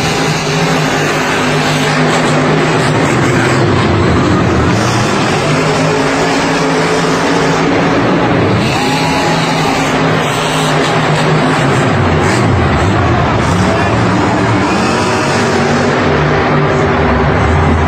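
Monster truck engines roar and rev loudly throughout.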